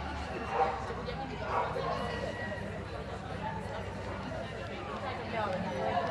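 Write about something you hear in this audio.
A crowd of spectators chatters in a large echoing hall.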